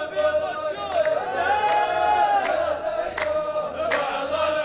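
A group of men claps in slow, sharp beats.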